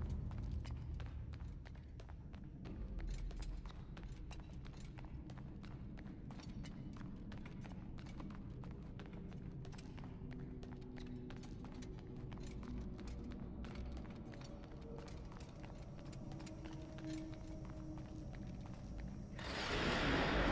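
Footsteps run quickly across a hard stone floor.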